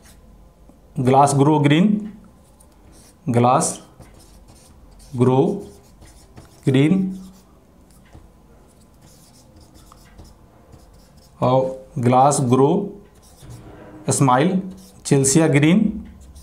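A man speaks slowly in short bursts, as if dictating.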